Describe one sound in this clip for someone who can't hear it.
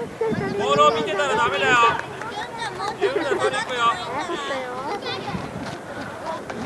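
Children shout and call out to each other outdoors.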